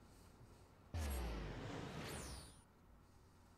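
A magical whoosh swells and fades away.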